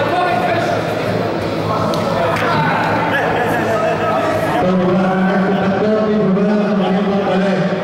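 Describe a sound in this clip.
Several men talk loudly over one another nearby.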